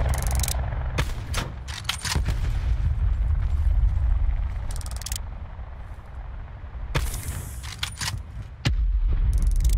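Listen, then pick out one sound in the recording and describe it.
Sniper rifle shots crack sharply.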